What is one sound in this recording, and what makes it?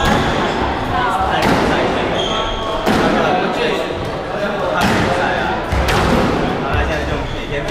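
Men talk casually in an echoing room.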